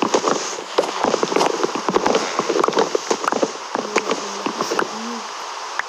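A game pickaxe digs and breaks wooden blocks with short crunching knocks.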